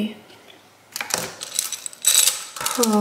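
Metal jewellery clinks and rattles as a hand picks it up.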